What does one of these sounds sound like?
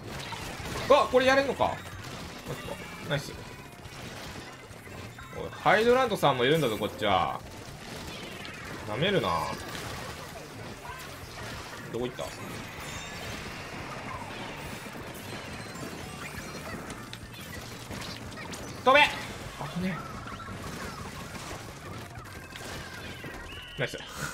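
Ink weapons splatter and spray in a video game.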